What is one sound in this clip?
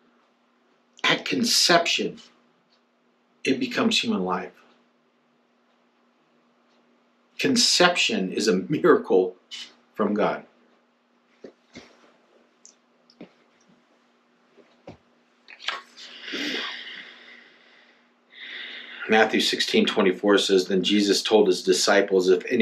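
A middle-aged man speaks calmly and closely, in short bursts with pauses.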